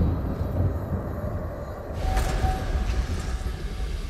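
A chest creaks open with a magical shimmer.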